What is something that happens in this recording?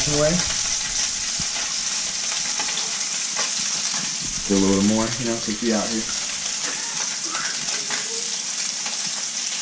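Food sizzles softly in a frying pan.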